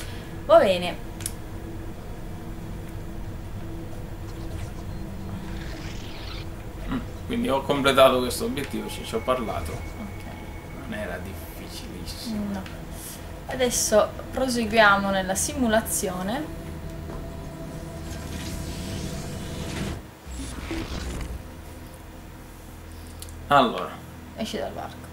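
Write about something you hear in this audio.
A woman talks and laughs close to a microphone.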